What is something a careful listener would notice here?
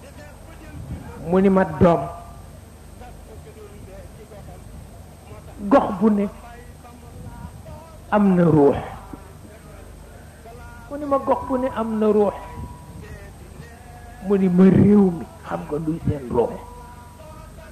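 A man speaks in short, emphatic phrases with long pauses.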